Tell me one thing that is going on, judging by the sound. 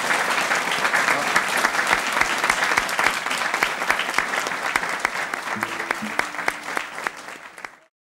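A man claps his hands close by.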